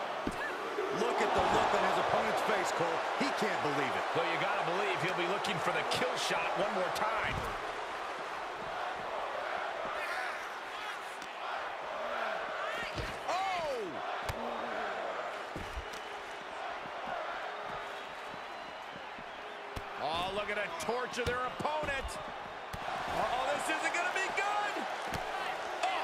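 Blows thud as wrestlers strike each other.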